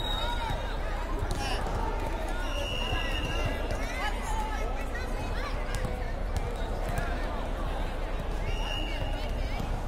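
A volleyball is struck with dull slaps.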